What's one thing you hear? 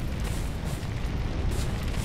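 A fire roars steadily nearby.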